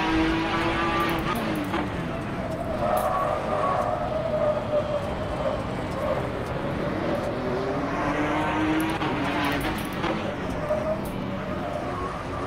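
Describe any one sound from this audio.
A race car engine roars, rising and falling in pitch as it revs through the gears.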